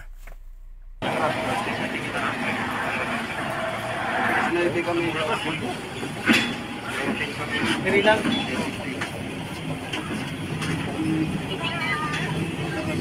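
A truck engine rumbles as a truck manoeuvres slowly outdoors.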